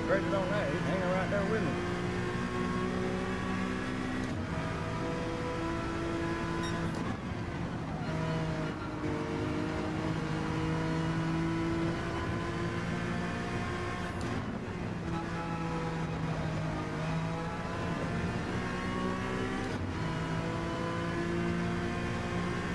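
A racing car engine roars steadily, rising and falling in pitch as the gears shift.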